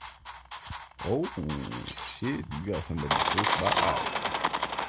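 Rapid gunshots crack nearby.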